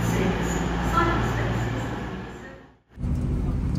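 A diesel train hums at a platform.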